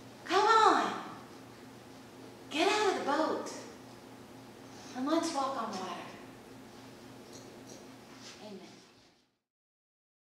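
A young woman speaks slowly into a microphone in an echoing hall.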